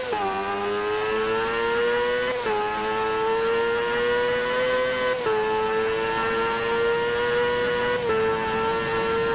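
A motorcycle engine revs high and climbs in pitch, dropping briefly at each gear change.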